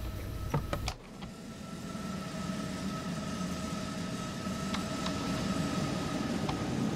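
A train hums past outside, its sound slowly swelling.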